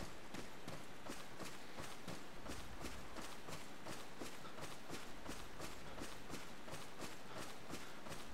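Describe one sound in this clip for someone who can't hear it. Footsteps crunch quickly through dry leaves.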